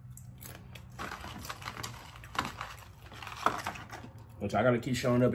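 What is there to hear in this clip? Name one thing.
Paper wrappers rustle and crinkle.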